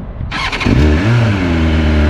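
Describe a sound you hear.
A motorcycle engine starts up.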